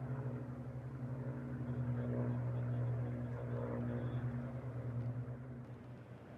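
A propeller plane's piston engine drones steadily overhead, then slowly fades.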